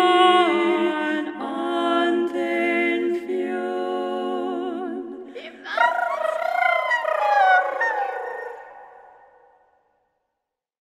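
A young woman sings close to a microphone, her voice ringing out and slowly fading away.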